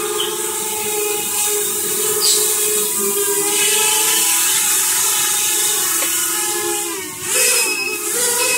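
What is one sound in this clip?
A small drone's propellers whine steadily, with the pitch wavering now and then.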